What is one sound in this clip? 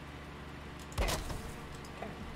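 A sharp thud of a blow lands.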